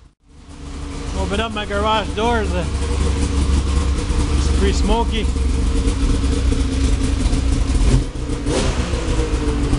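A snowmobile engine idles with a loud, steady low rumble.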